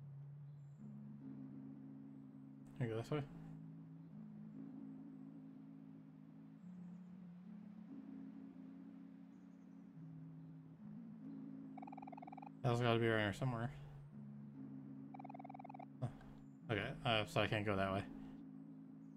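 Soft, gentle game music plays steadily.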